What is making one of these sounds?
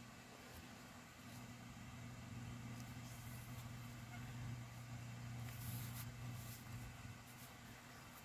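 Paper rustles and crinkles softly as hands press it flat.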